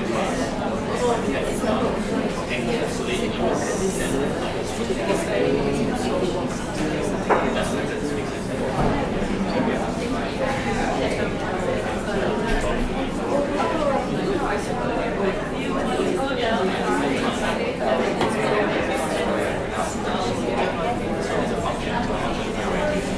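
A young man speaks calmly into a microphone, heard through a loudspeaker in a room.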